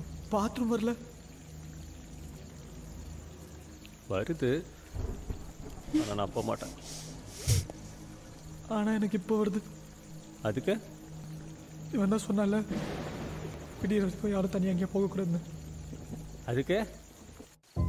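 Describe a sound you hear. Young men talk quietly in turns.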